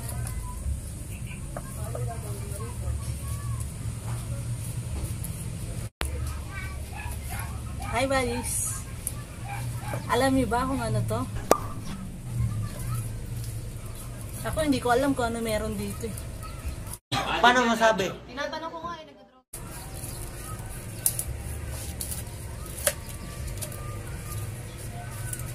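A knife slices through a pineapple.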